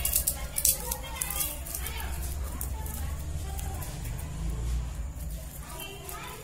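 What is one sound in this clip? Hands press and pinch soft dough with faint sticky sounds.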